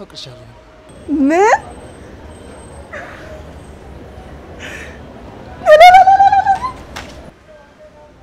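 A young woman exclaims with excitement.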